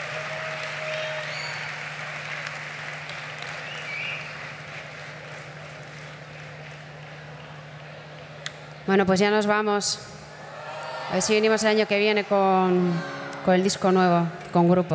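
Acoustic and electric guitars play softly through loudspeakers.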